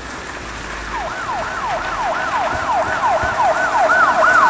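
A police siren wails close by, rising and falling quickly.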